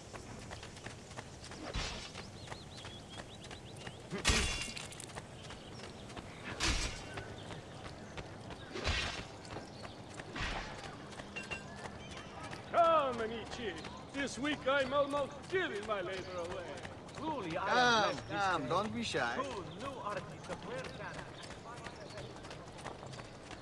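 Quick footsteps run on stone paving.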